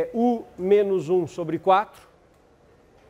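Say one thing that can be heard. A middle-aged man speaks clearly into a close microphone.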